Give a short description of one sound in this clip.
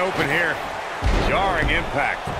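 A body thuds onto a wrestling ring mat.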